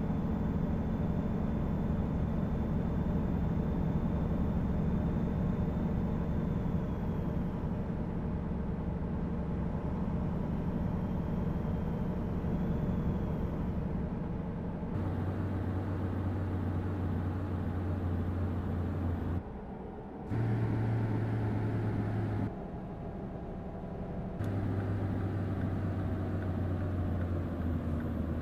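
Tyres roll along a road.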